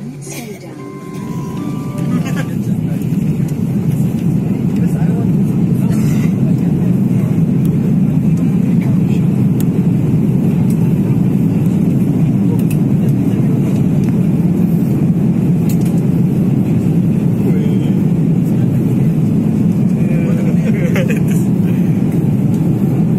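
Jet engines roar loudly and steadily.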